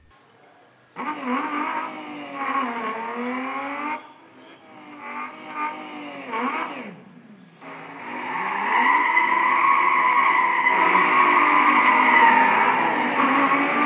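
A racing car engine roars and revs through a small speaker.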